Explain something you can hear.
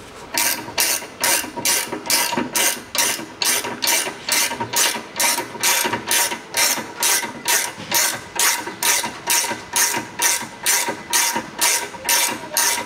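A ratchet wrench clicks in quick, even strokes.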